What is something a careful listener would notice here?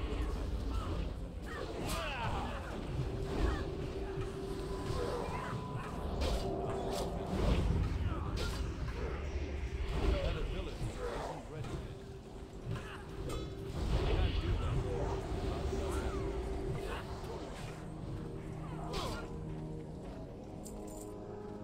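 Game spell effects and weapon hits clash and crackle throughout a battle.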